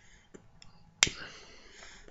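A lighter clicks and flares.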